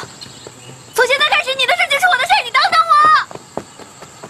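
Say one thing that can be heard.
A young woman shouts loudly as she runs off.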